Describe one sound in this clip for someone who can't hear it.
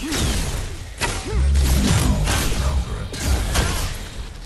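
Fire blasts roar and crackle.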